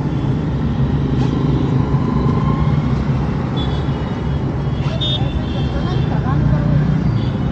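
Traffic rumbles outside on a busy road.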